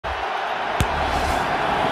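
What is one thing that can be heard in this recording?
A football is kicked with a thump.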